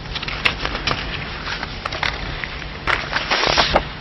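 Paper rustles as a man turns pages.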